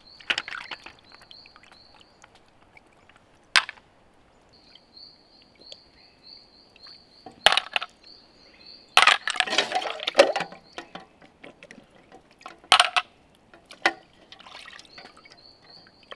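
A knife scrapes and taps against a small fruit.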